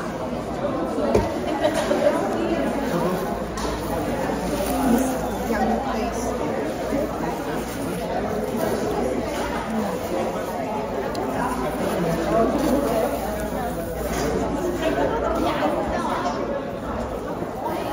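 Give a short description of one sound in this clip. A busy room murmurs with many people chatting in the background.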